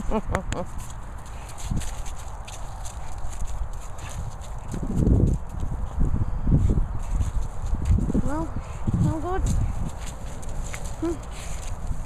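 A dog trots and scuffles over frosty grass and dry leaves.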